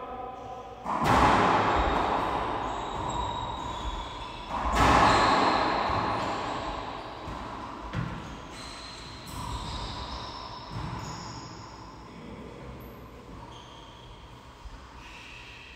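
A racquetball smacks hard against the walls, booming in an echoing court.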